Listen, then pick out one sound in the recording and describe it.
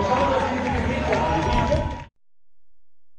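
A crowd of spectators cheers outdoors.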